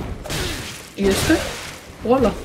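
A sword clashes and slashes loudly.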